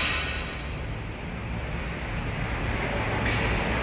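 A car engine idles nearby with a low, steady rumble.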